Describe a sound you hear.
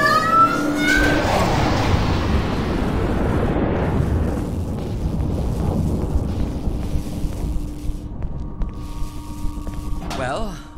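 A loud electric roar bursts out and slowly fades.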